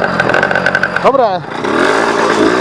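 A motorcycle engine briefly revs up and drops back.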